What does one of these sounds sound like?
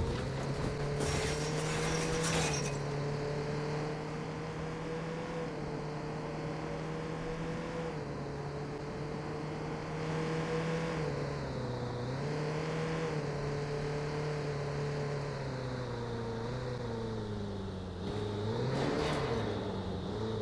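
Tyres screech briefly as the car turns.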